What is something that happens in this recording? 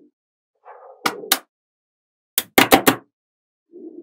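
Magnetic balls snap together with sharp clicks.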